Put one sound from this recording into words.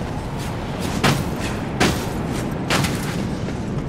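A heavy blade swooshes through the air.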